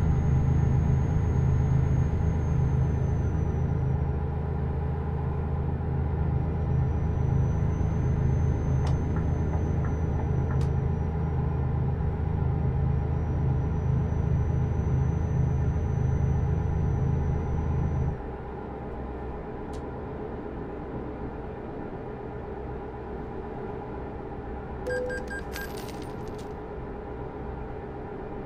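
A truck engine drones steadily, then suddenly drops quieter.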